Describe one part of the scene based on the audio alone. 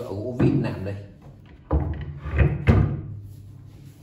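A wooden board knocks and scrapes against a table.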